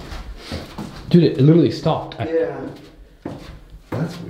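Footsteps thud down wooden stairs.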